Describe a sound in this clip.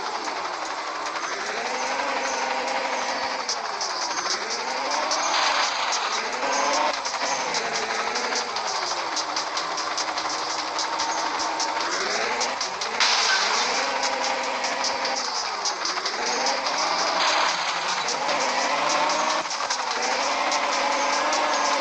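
A car engine revs up and down repeatedly, rising and falling in pitch.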